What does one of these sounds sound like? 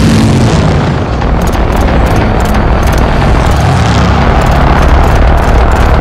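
A flying craft whooshes past overhead.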